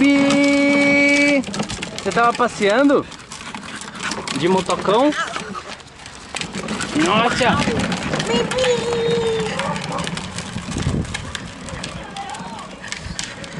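Plastic toy wheels rumble over paving.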